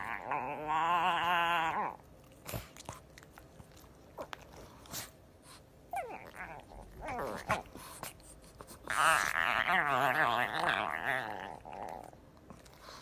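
A dog whines and grumbles in high, wavering cries.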